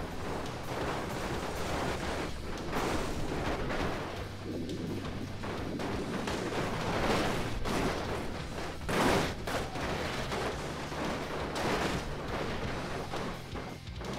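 Tyres thud and bang onto metal containers.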